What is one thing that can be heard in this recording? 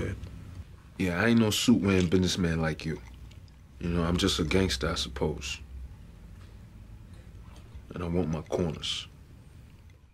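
A man speaks calmly and steadily.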